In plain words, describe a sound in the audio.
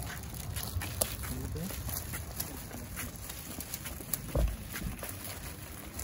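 Footsteps tread on pavement outdoors.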